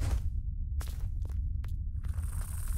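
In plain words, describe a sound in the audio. Light footsteps patter on the ground.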